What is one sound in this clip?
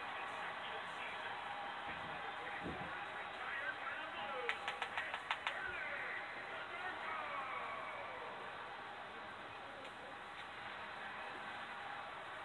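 A cheering crowd plays steadily through a television speaker.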